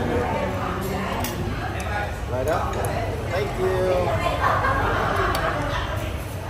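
Utensils clink against a metal pot.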